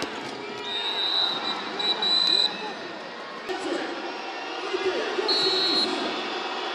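A referee blows sharp blasts on a whistle.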